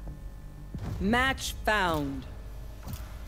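A bright electronic alert chime rings out with rising tones.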